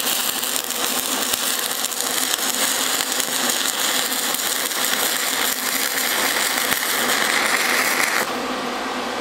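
An arc welder crackles and sizzles steadily.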